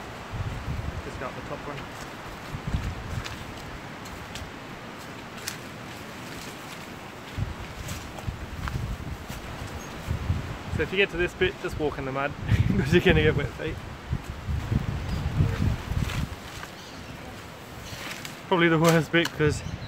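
Footsteps crunch through dry grass and brush.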